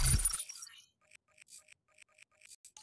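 Soft clicks tick in a quick, even row.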